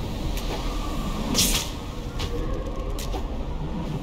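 Wind rushes past during a glide through the air.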